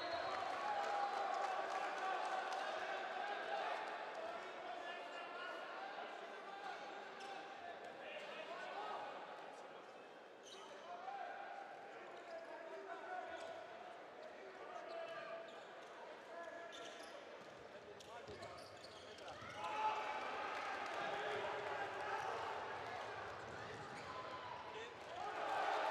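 A crowd chants and cheers in a large echoing hall.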